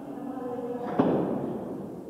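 A bass drum booms.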